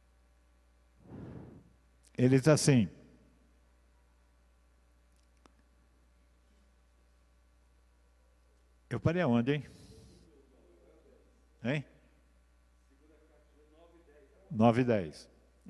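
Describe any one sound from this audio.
An elderly man speaks slowly into a microphone in short bursts, with long pauses.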